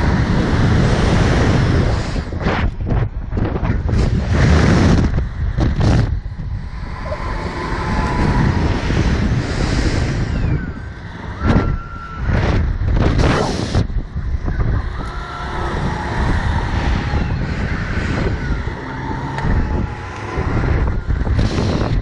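Wind roars loudly past a microphone.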